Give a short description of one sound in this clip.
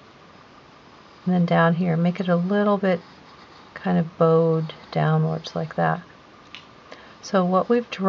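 A pencil scratches lightly on paper.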